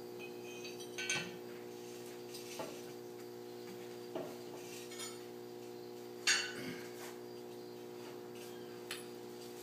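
Metal pieces clank and knock as they are handled.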